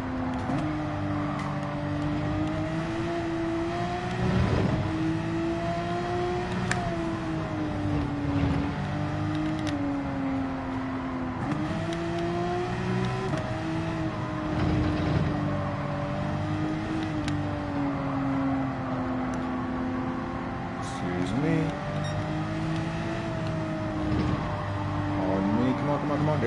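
A racing car engine roars steadily, rising and falling in pitch as the car speeds up and slows for corners.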